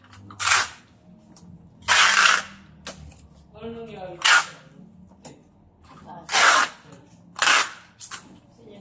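Packing tape rips loudly off a roll in short bursts.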